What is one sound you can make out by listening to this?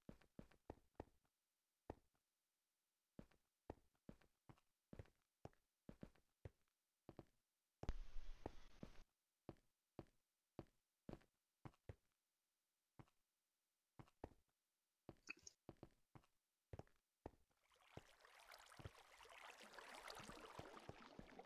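Footsteps tap quickly and evenly on stone.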